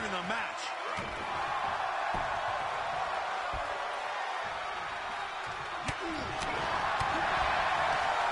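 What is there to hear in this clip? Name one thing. Heavy bodies thud against each other and a padded mat.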